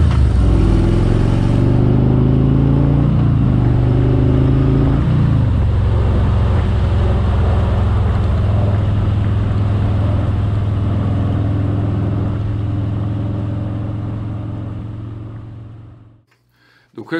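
A motorcycle engine rumbles steadily, shifting gears and then fading away.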